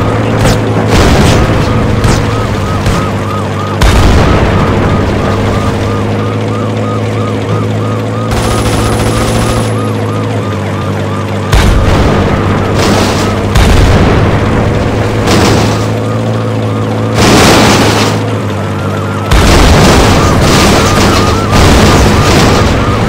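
Explosions blast.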